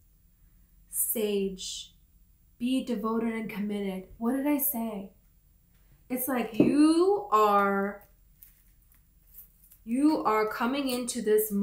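A young woman talks close to the microphone in a calm, chatty way.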